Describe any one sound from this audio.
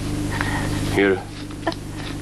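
A young woman cries out briefly nearby.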